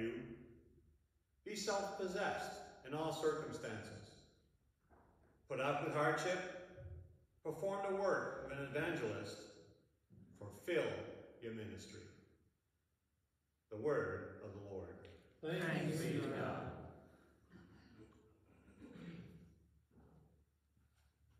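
A middle-aged man speaks calmly in an echoing room.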